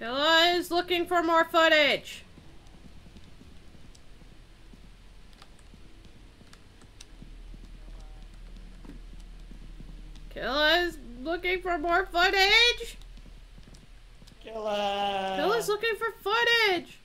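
A young woman speaks with animation into a microphone, close by.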